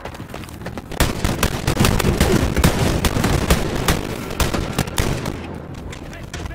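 A gun fires in rapid bursts of sharp shots.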